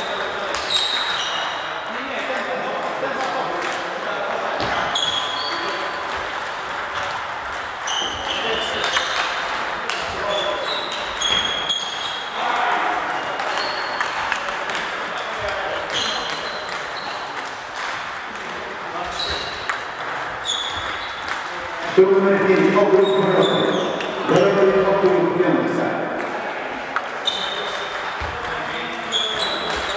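A crowd of players chatters in the background.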